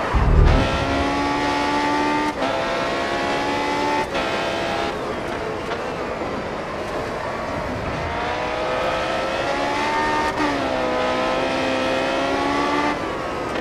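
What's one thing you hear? A racing car engine screams at high pitch, rising through the gears with sharp drops at each shift.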